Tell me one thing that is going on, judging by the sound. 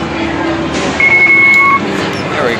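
A card reader gives a short, high beep.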